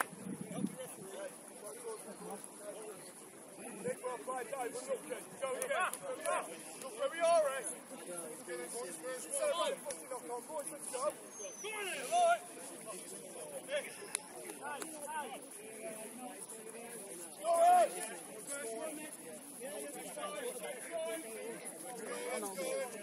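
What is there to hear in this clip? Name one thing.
Spectators chatter and call out nearby, outdoors.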